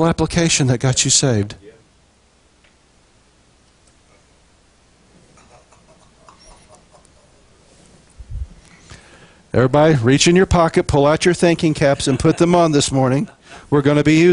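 A middle-aged man speaks with animation through a microphone, pausing at length before going on.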